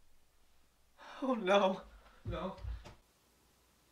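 A young man speaks.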